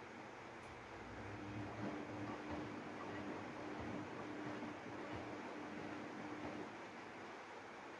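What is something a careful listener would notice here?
Water sloshes and splashes inside a washing machine drum.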